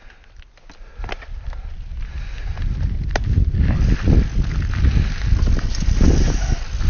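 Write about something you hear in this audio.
A bicycle's frame and chain rattle over bumps.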